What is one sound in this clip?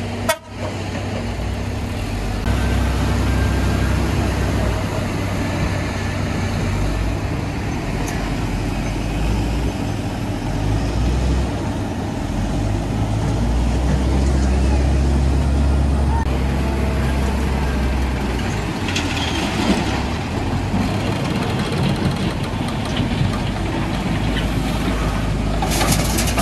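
Diesel truck engines rumble and idle nearby.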